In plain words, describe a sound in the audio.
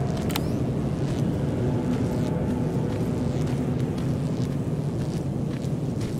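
Dry grass swishes and rustles against a moving body.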